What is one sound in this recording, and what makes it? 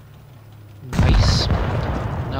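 A tank cannon fires with a loud blast.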